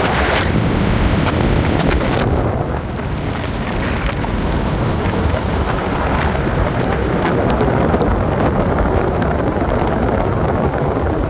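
Tyres of a moving car hum on an asphalt road.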